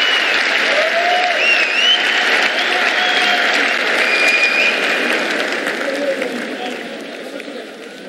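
A crowd cheers and whistles in a large hall.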